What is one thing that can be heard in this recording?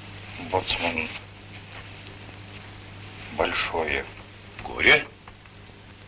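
A man speaks in short, calm phrases nearby.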